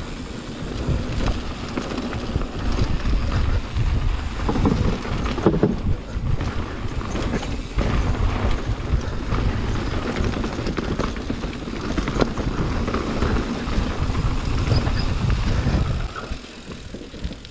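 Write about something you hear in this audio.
A mountain bike rattles and clanks over bumps.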